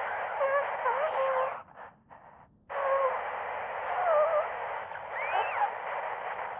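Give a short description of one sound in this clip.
Radio static hisses and crackles loudly.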